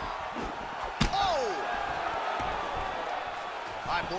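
Punches land with sharp smacks during a clinch.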